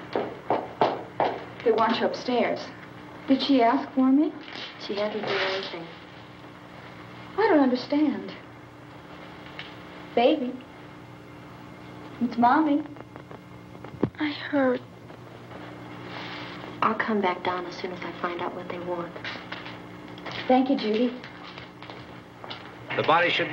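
A woman speaks in a low, tense voice.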